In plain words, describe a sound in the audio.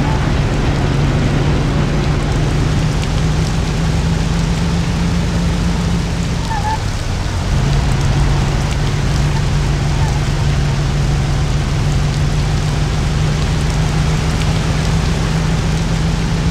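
An old car engine hums steadily as the car drives along.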